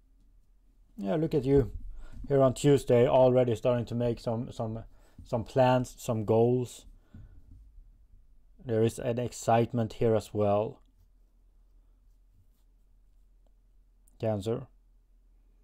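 A man speaks calmly and thoughtfully close by.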